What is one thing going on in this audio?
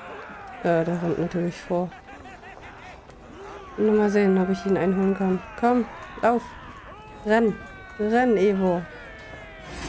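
Men shout loud war cries.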